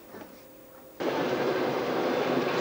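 A train rumbles loudly along the tracks, heard through an open window.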